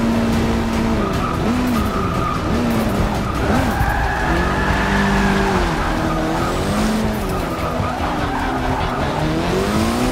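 A racing car engine revs up and down through gear changes.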